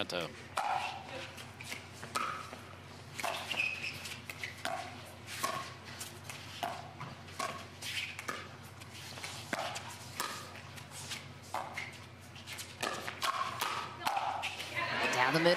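Paddles strike a plastic ball back and forth in a quick rally.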